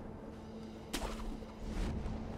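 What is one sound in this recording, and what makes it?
A grappling hook whooshes and snaps taut.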